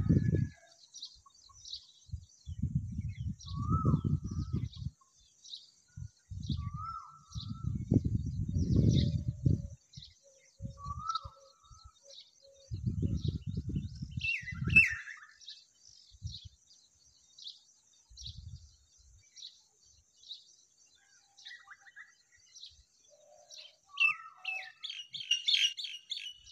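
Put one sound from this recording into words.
Baby birds chirp with thin, high cheeps, over and over.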